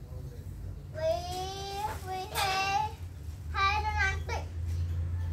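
A young boy speaks in a high voice.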